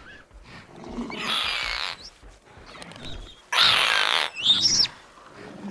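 A small dinosaur screeches loudly.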